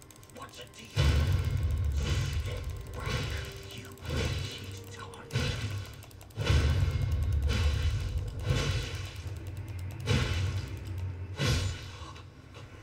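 Blades clash and strike in a fight, with heavy thuds.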